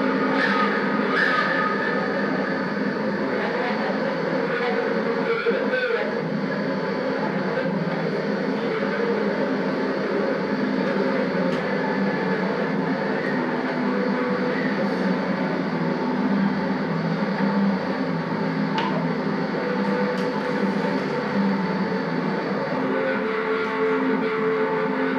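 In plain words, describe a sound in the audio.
A crowd murmurs and chatters in a busy street, heard through loudspeakers in a room.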